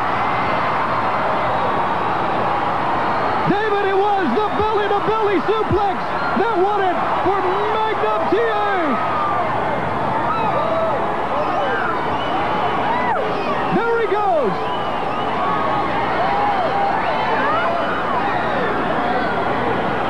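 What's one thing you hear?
A large crowd cheers and roars loudly in a big echoing hall.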